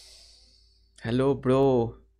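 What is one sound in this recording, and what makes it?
A man speaks close to a microphone over an online call.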